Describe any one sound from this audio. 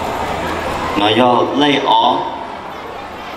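A young man speaks into a microphone over loudspeakers in a large hall.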